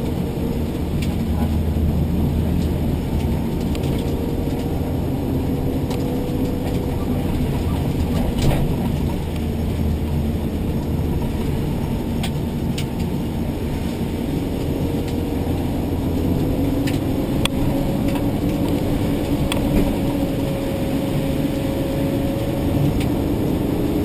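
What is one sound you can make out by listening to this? Small rattles and knocks sound from inside the car.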